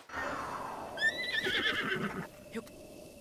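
A horse whinnies.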